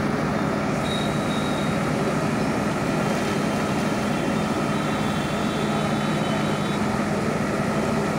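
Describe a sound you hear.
The diesel engine of a backhoe loader runs under load.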